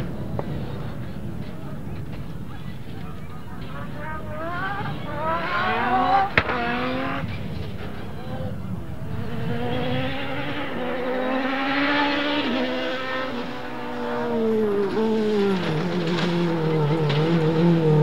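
A rally car engine revs hard and whines through its gears as the car speeds past.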